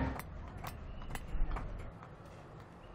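A hammer strikes brick with sharp knocks.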